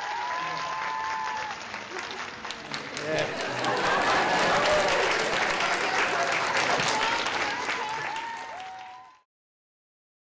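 A string orchestra plays a slow piece with sliding notes, then stops abruptly.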